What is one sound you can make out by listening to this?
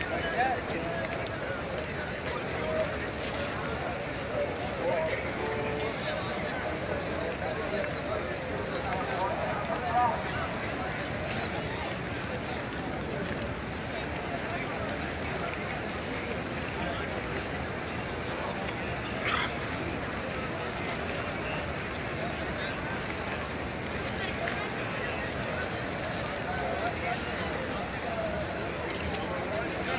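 A large crowd murmurs and chatters outdoors nearby.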